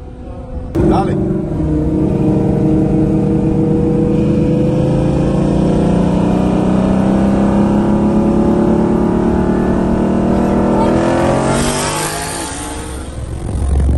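A sports car engine roars loudly and climbs in pitch as it accelerates hard.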